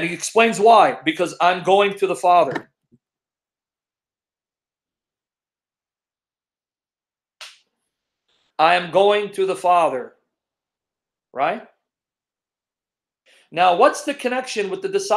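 A middle-aged man talks with animation over an online call, pausing now and then.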